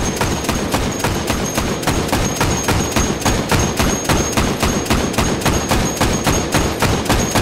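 A heavy machine gun fires rapidly and steadily in an echoing hall.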